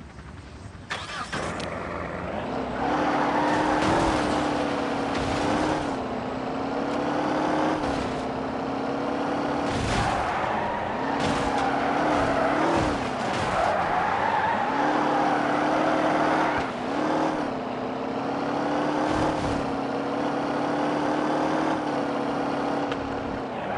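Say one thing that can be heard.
A car engine revs and roars as the car speeds up and changes gear.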